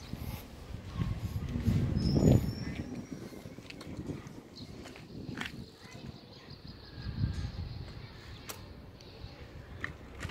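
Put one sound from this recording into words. Bicycle training wheels rattle and roll on asphalt.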